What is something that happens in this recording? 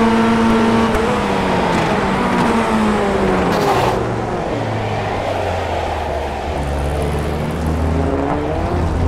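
A racing car engine drops in pitch as the car slows for a corner, then climbs again.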